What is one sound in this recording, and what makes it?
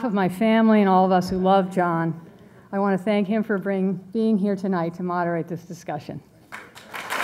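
A woman speaks warmly into a microphone in a large hall.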